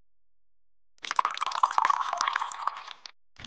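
Liquid pours and splashes into a glass bowl.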